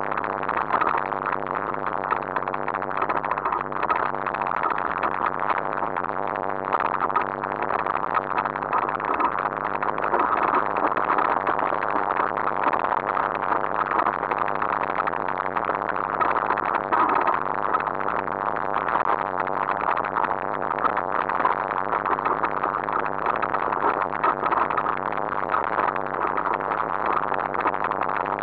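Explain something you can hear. Wind rushes loudly and steadily.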